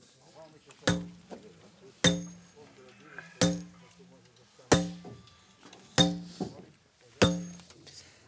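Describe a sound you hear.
A sledgehammer strikes metal with sharp ringing clangs.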